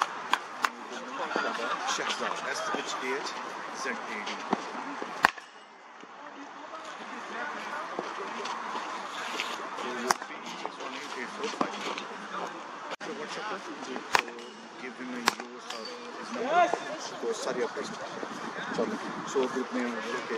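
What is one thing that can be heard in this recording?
Young men talk nearby outdoors.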